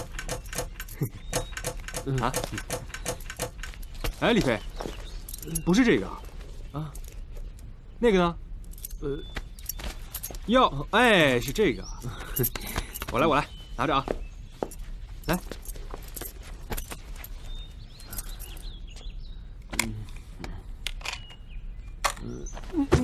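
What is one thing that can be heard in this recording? Another young man answers calmly close by.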